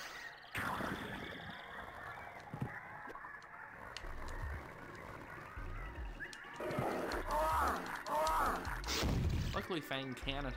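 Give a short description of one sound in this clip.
Video game music and sound effects play throughout.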